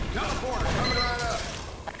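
An automatic gun fires in bursts.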